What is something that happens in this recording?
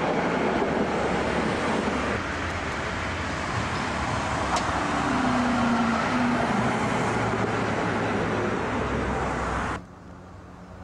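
A tram rumbles past on rails with a loud rushing noise.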